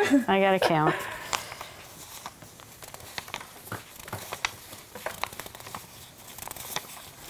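Playing cards shuffle and tap on a table.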